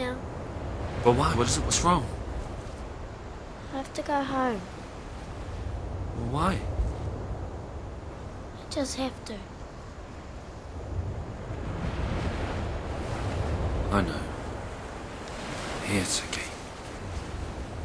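Waves break gently on a beach.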